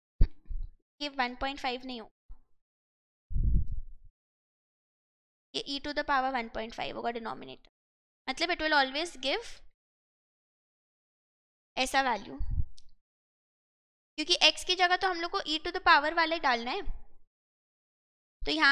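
A young woman explains calmly into a microphone, speaking in bursts with pauses.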